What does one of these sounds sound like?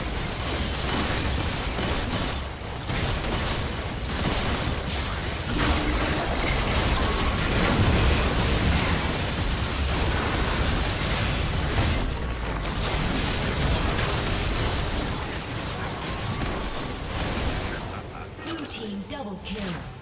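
Video game battle effects crash, zap and boom rapidly.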